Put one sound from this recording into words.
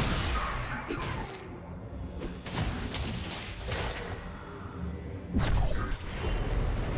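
Game spell effects whoosh and crackle in quick bursts.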